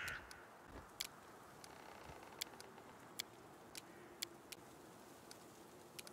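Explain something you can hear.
Soft clicks tick as items are picked.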